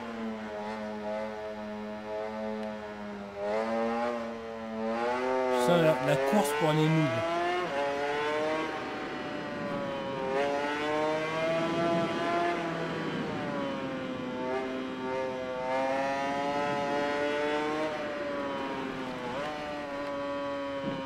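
A motorcycle engine roars at high revs, rising and falling in pitch as the gears shift.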